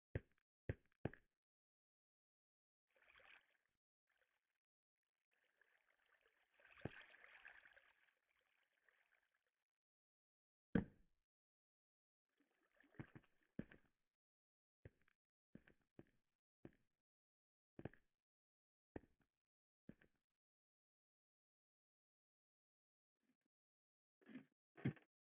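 Footsteps tread on stone at a steady pace.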